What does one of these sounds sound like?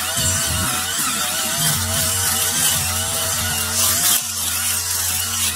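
A string trimmer engine whines steadily while cutting grass.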